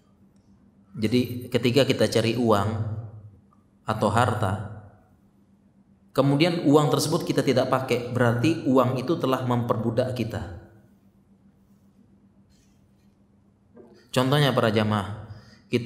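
A man speaks calmly into a microphone, in short phrases with pauses.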